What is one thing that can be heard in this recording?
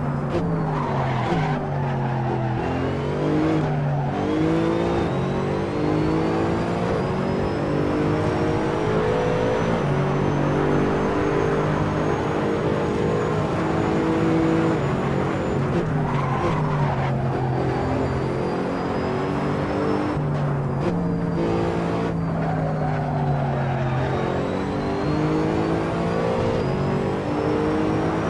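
A racing car engine roars, revving up and dropping as the gears shift.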